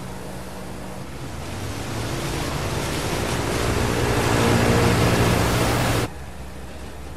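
A boat engine roars louder as the boat speeds over water.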